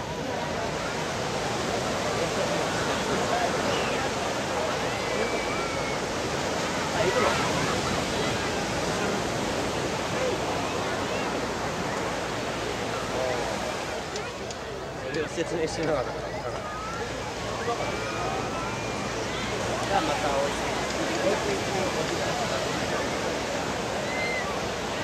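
Waves break on a beach nearby.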